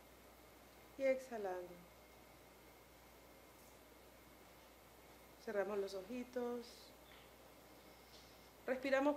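A woman speaks slowly and calmly, close by.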